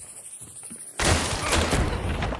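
A pistol fires a loud shot that echoes.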